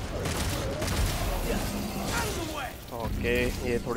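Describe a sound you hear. A blade slashes and thuds into a creature.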